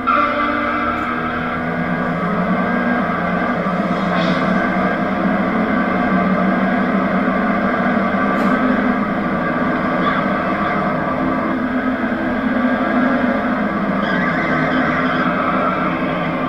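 Car tyres screech as a car skids.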